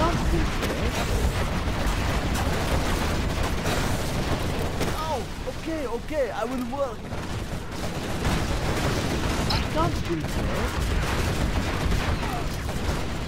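Gunfire crackles in a battle.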